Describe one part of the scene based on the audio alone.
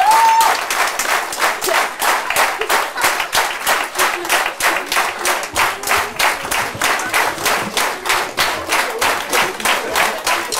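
An audience claps in a steady rhythm in a large hall.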